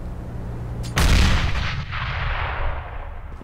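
A smoke grenade hisses loudly as it bursts and spreads.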